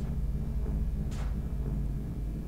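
A heavy metal crate drops and thuds onto a hard floor.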